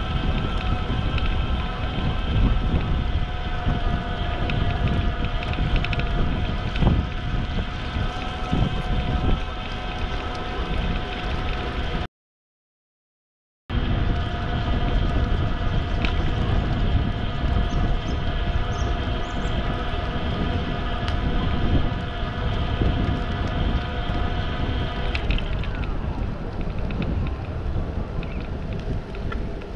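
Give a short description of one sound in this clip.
Wind rumbles and buffets against a microphone while riding.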